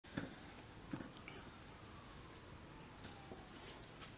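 Water trickles from a tap into a plastic jug.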